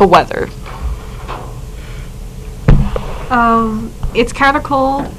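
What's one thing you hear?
A young woman speaks into a microphone close by.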